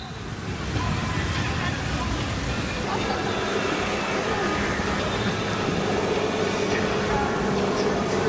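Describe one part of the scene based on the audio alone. Waves slosh and lap across a pool of water.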